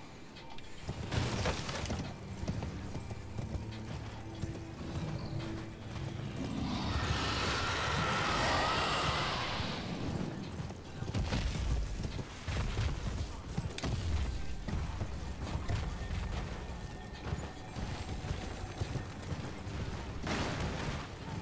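A horse's hooves gallop over dirt.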